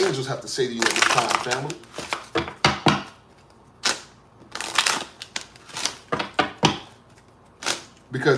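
Cards and small cardboard boxes tap and rustle as they are handled.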